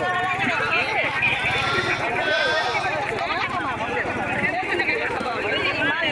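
A crowd of people argue loudly.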